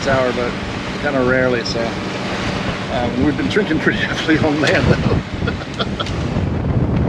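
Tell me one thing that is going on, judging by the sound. A middle-aged man talks calmly and cheerfully, close by.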